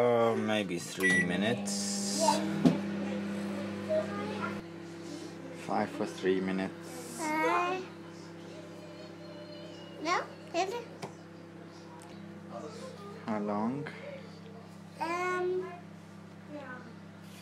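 A microwave hums steadily as it runs.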